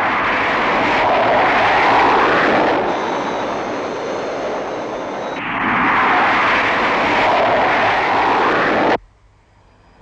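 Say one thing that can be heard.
Spacecraft engines roar loudly in a steady, rushing whoosh.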